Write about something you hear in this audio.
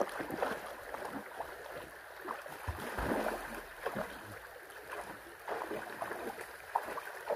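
Water splashes as a dog paddles and thrashes in a stream.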